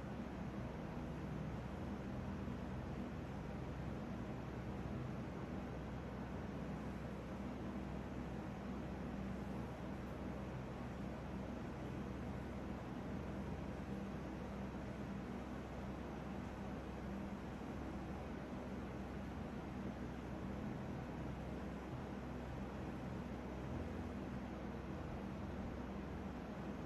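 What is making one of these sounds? Hands softly rub and pat skin close by.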